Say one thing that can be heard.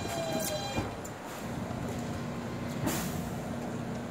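Train doors thud open.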